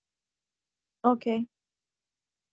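A woman speaks a few quick words over an online call.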